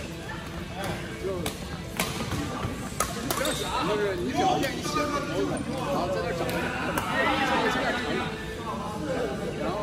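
Adult men talk and call out to each other across the hall.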